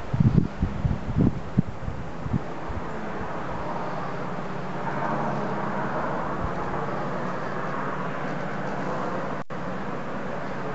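Wind blows steadily outdoors, buffeting hard at first.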